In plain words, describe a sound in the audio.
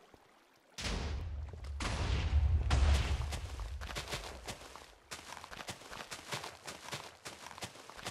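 Blocks are placed with soft, short thuds.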